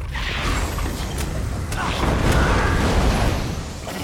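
A magic spell crackles and roars in bursts.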